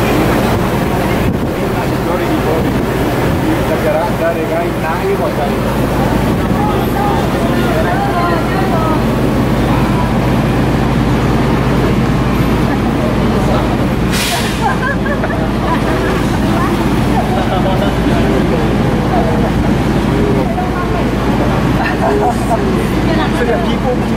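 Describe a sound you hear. A crowd of men and women chat cheerfully close by.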